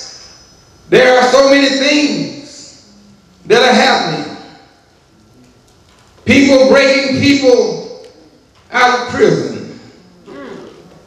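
A man speaks slowly and solemnly into a microphone, in bursts with pauses, in a room with some echo.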